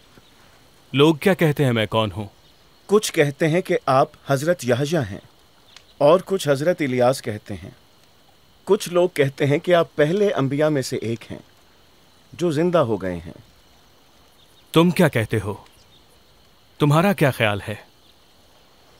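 A man speaks calmly and firmly in short phrases with pauses.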